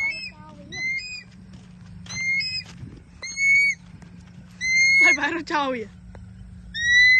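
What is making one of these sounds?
A bird held in hand gives loud, high, repeated shrieking calls.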